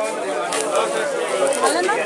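Plastic wrapping crinkles under a hand.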